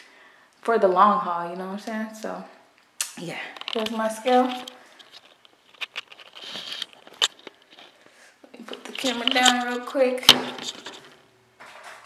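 A young woman talks close by in a lively, casual way.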